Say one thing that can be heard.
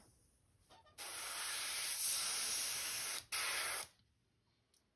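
An airbrush sprays with a loud, steady hiss.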